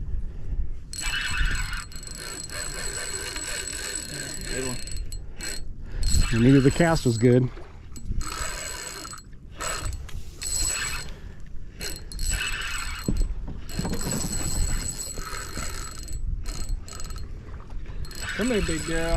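A fishing reel clicks and whirs as its line is wound in.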